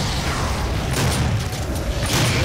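A shotgun fires a loud, booming blast.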